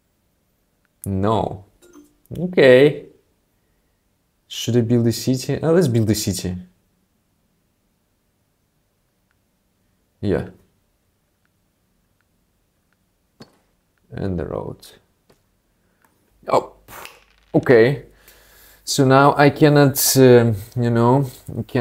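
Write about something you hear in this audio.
A young man talks casually and with animation into a close microphone, in short bursts with pauses.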